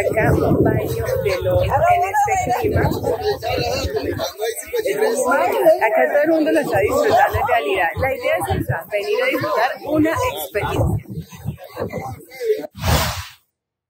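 A young woman talks cheerfully and close up.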